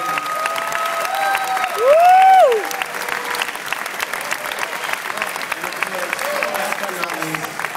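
A large audience claps and cheers in an echoing hall.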